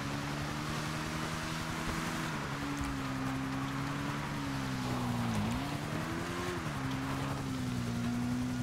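Water splashes and hisses under the motorbike's wheels.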